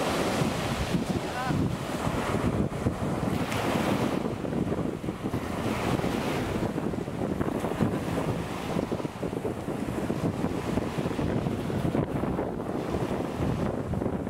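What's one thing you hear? Small sea waves break and foam close by.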